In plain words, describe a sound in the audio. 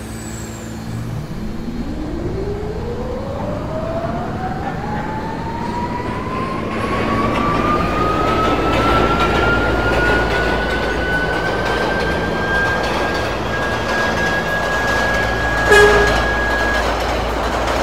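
A train's electric motor whines, rising steadily in pitch as it speeds up.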